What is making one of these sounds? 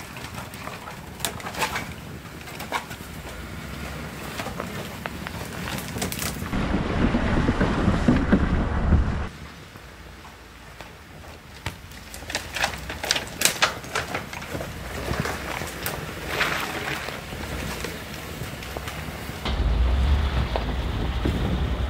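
A truck engine rumbles as it drives slowly.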